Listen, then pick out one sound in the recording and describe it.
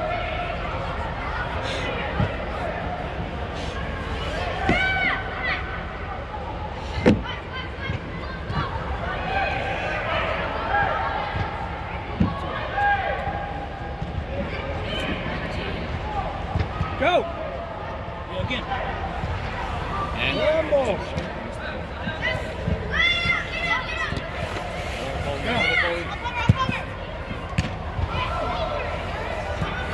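Children shout across a large echoing indoor sports hall.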